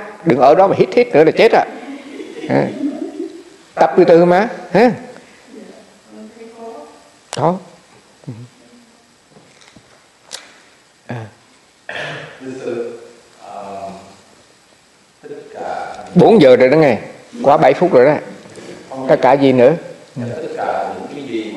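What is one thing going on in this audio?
An elderly man speaks calmly and close to a microphone, with pauses.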